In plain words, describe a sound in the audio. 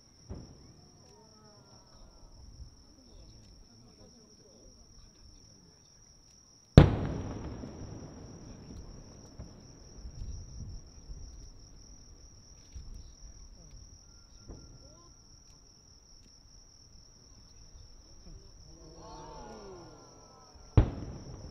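A firework rocket whistles as it rises.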